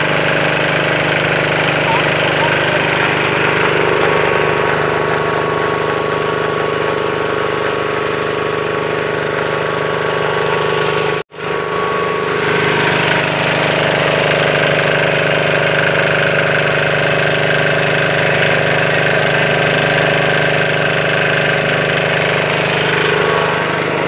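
A small engine runs steadily and loudly close by.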